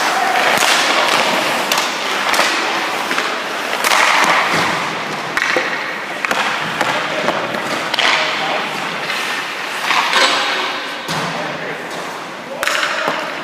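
A puck clacks sharply off a hockey stick.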